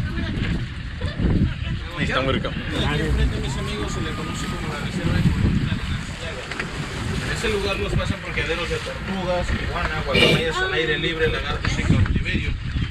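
Several men and women chat casually nearby.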